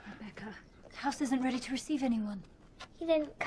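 A woman speaks anxiously.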